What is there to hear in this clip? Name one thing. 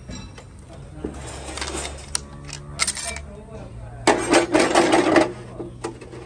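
Screwdrivers scrape and click against a metal gear.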